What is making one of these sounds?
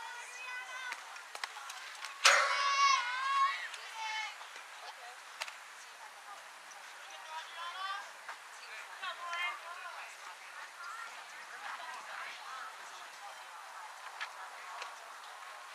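Distant voices call out across an open field.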